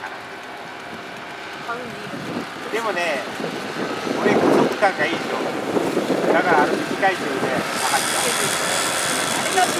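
A paramotor engine drones overhead.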